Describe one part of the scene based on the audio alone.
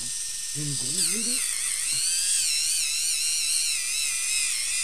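An electric foot file whirs with a high, wavering buzz.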